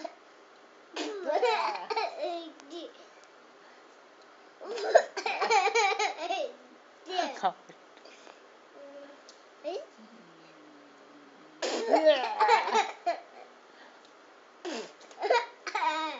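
A young child laughs and squeals with delight close by, in bursts.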